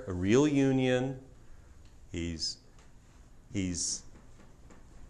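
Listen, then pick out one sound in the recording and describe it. A middle-aged man speaks with animation into a clip-on microphone, in short bursts.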